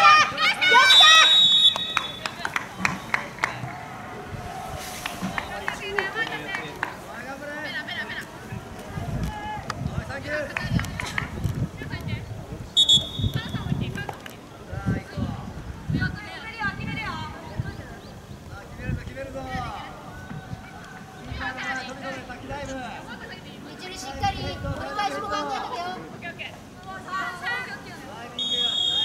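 A referee's whistle blows in short blasts.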